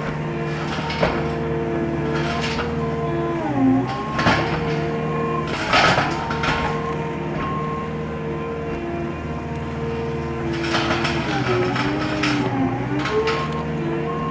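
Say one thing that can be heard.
Wood cracks and snaps as a tree stump is pushed and pried.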